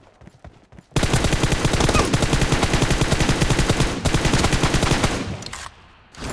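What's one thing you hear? An automatic rifle fires in a long rapid burst.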